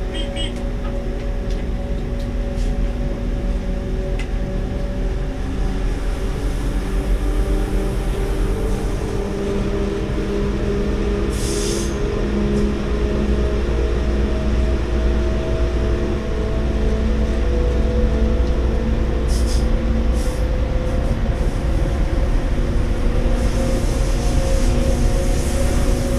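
A train hums steadily with a low electric whine as it runs along the track.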